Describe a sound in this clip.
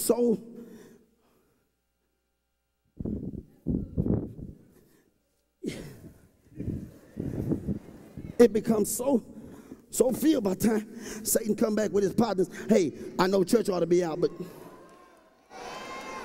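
A man preaches loudly with animation through a microphone, in an echoing hall.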